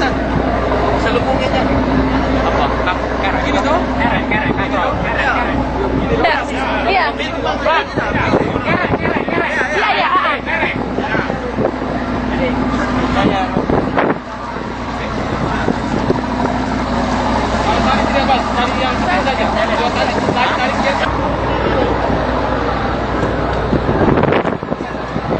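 Several men talk and call out loudly nearby.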